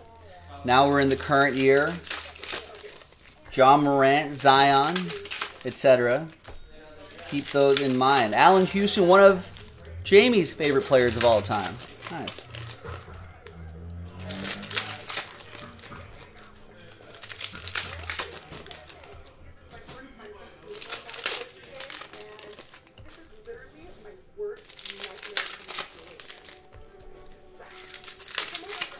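Foil wrappers crinkle and rustle as they are torn open.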